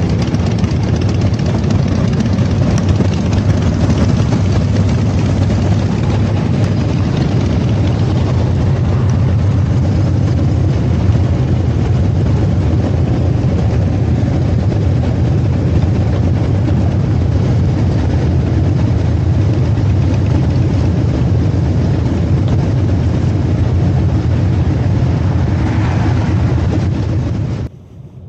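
Motorcycle engines idle with a deep, steady rumble close by.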